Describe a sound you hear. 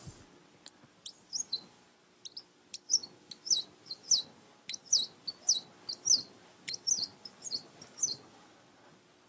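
A marker squeaks in short strokes on a whiteboard.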